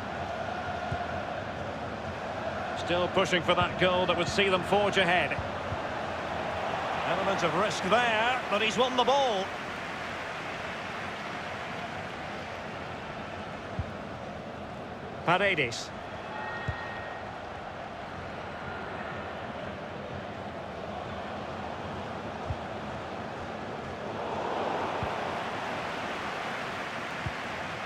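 A stadium crowd roars steadily in the background.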